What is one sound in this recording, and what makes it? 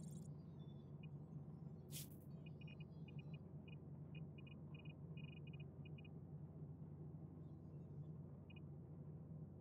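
Short electronic beeps tick in quick bursts as menu items are selected.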